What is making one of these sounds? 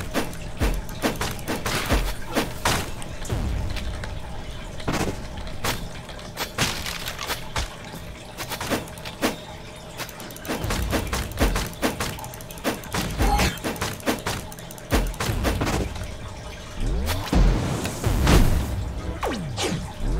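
Hits land with sharp thuds and crunches.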